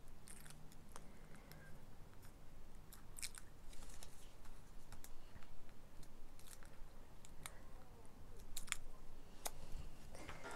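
Small scissors snip through paper.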